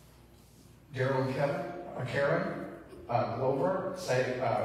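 A man reads aloud clearly through a microphone.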